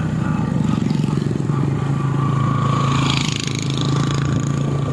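A motor tricycle passes by with a puttering engine.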